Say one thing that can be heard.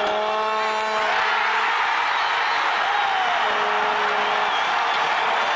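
A large stadium crowd bursts into a loud roar.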